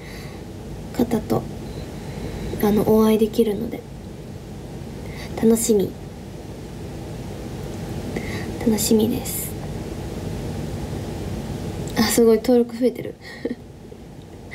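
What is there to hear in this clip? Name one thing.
A young woman speaks casually in short bursts close to a microphone.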